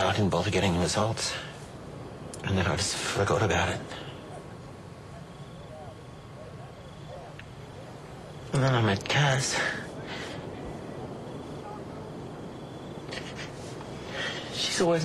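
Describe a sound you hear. A man speaks in a low, strained voice, close by.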